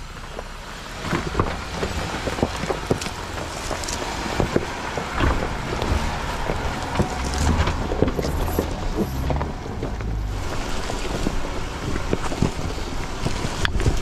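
Tyres crunch and grind over loose stones and dry leaves.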